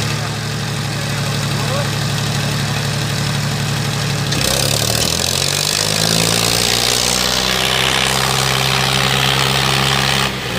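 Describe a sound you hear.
Tractor engines roar and strain under heavy load.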